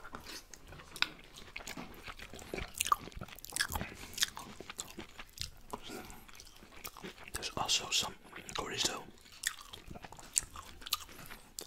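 A man chews food wetly, close to a microphone.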